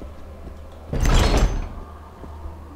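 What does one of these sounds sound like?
A heavy metal door swings open.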